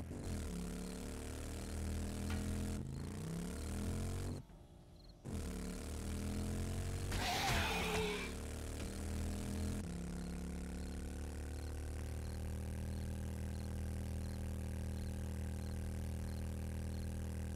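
A motorbike engine drones steadily, rising and falling in pitch as it rides over rough ground.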